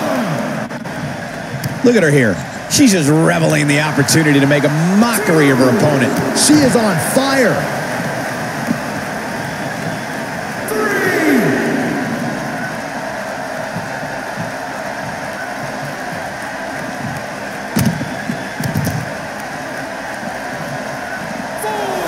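A large crowd cheers and roars steadily in a big echoing hall.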